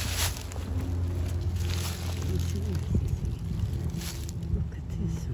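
Dry leaves and grass rustle and crunch close by.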